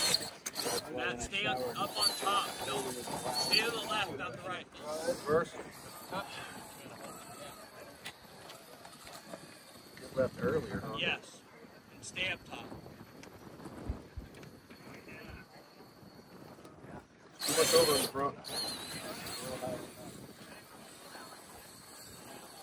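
A small electric motor whines.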